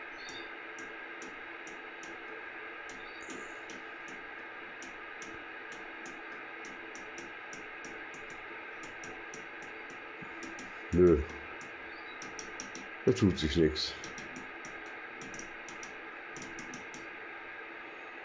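A rotary knob clicks quickly and steadily as it turns.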